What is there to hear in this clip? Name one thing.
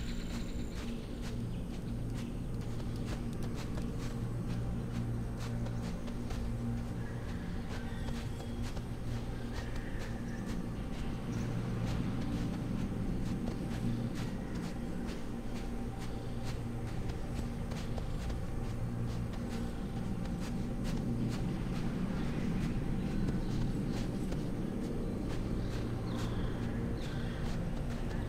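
Footsteps crunch on sand and then thud on wooden boards.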